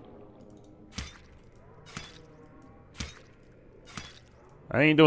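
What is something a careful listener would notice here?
A knife slashes at a plant underwater in quick strokes.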